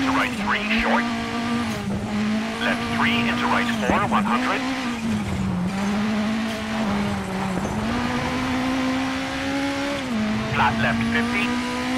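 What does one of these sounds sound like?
A rally car engine drones loudly, dipping in pitch at each gear change.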